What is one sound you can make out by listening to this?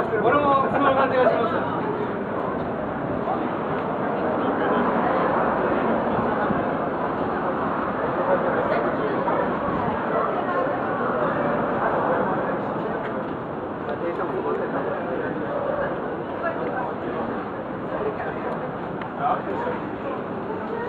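City traffic hums steadily in the open air.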